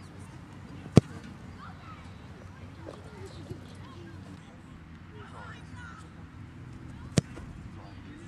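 A foot kicks a football with a sharp thump.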